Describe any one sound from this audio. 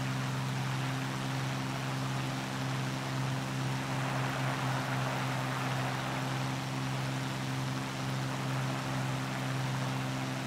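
Wind rushes past the aircraft.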